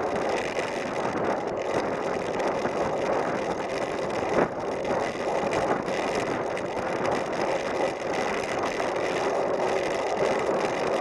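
Bicycle tyres rattle and crunch over rough, broken concrete.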